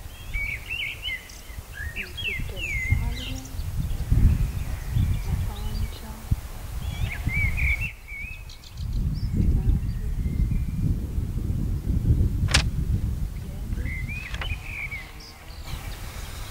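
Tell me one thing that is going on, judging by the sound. A young woman speaks calmly and close by, outdoors in gusty wind.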